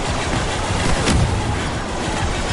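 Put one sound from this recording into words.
A large explosion booms and crackles.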